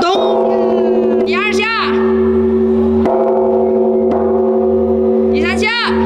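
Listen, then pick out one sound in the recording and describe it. A large bronze bell is struck with a wooden log and rings with a deep, long hum.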